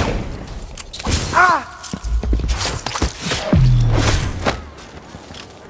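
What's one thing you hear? Blades slash and strike with sharp, heavy impacts.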